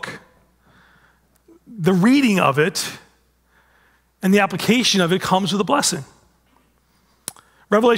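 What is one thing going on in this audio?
A middle-aged man speaks with animation through a headset microphone, in bursts with pauses.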